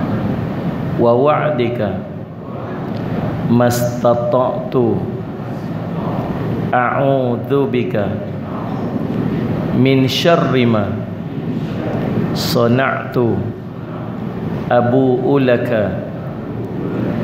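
A man speaks calmly into a microphone, in short phrases with pauses.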